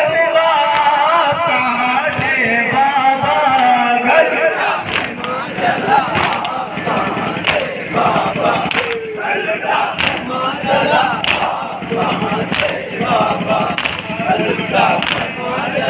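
A crowd of men chants loudly together.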